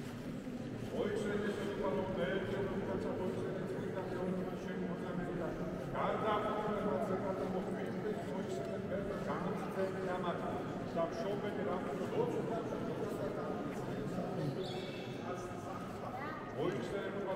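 A man chants a prayer, echoing in a large stone hall.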